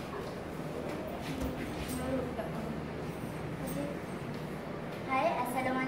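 A teenage girl speaks calmly close by.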